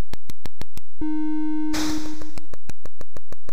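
A low electronic buzzing tone sounds briefly.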